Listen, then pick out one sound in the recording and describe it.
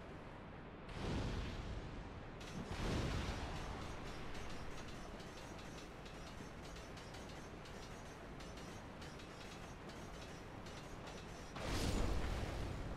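A fireball bursts with a whooshing roar.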